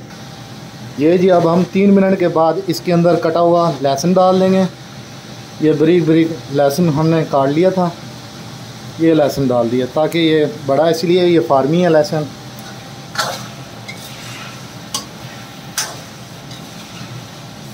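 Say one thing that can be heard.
Food sizzles gently in a hot pan.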